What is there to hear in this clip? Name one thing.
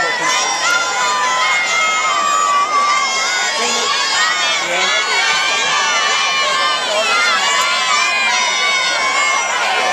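A large crowd cheers and shouts outdoors throughout.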